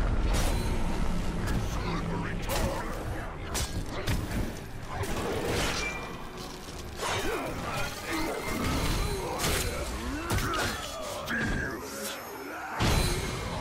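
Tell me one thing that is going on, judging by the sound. A large beast roars and growls.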